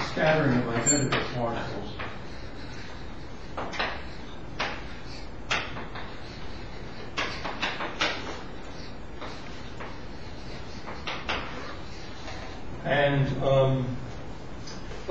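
An elderly man speaks calmly, heard through a microphone.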